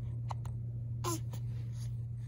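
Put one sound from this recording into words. A baby gives a short, high coo up close.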